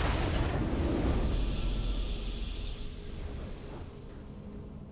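A triumphant game fanfare swells and then fades away.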